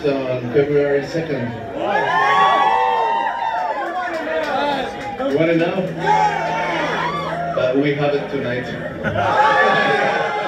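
A band plays rock music loudly through amplifiers.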